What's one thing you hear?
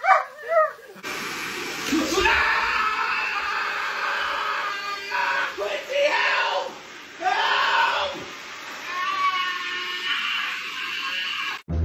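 A vacuum cleaner runs with a steady roar.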